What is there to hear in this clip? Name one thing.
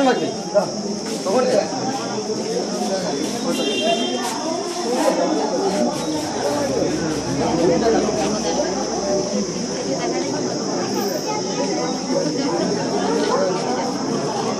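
A crowd of men and women talk over one another nearby.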